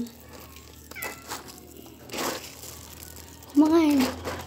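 Dry pet food rustles and clatters under a hand.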